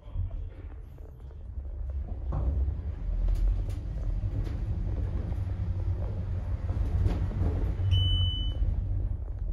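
An elevator car hums low as it rises.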